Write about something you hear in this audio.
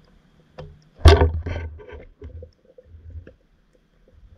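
Water thumps and sloshes close by, heard from underwater.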